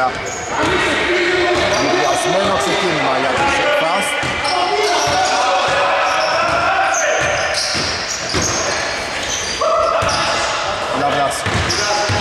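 A basketball thuds as it bounces on a wooden floor.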